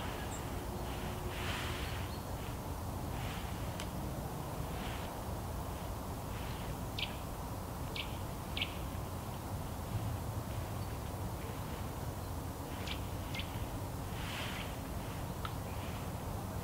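Hands scrape and pat soft soil.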